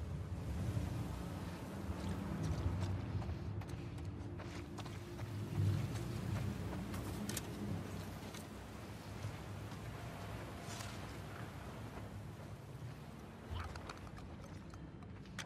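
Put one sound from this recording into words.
Footsteps creep slowly over a hard floor.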